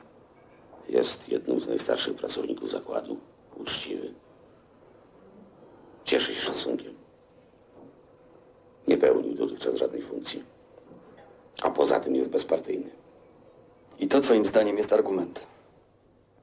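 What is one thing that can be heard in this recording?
Another middle-aged man answers in a low, calm voice nearby.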